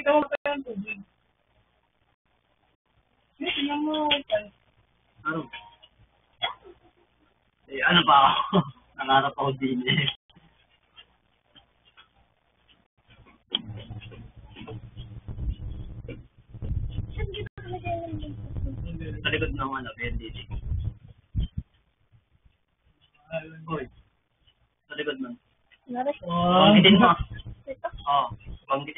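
Young boys talk casually close by, heard through a small tinny microphone.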